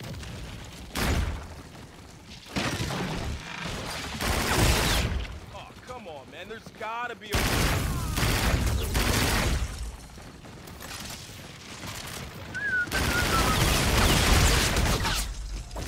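Gunfire bursts loudly in rapid bursts.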